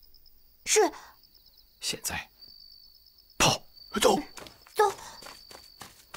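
A man whispers urgently close by.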